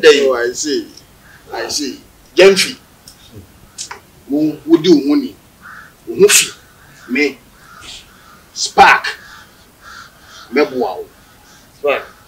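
A man speaks with animation close by, in short bursts with pauses.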